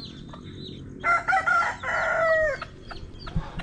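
A hen squawks loudly outdoors.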